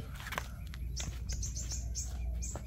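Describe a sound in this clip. Footsteps scuff on the ground close by.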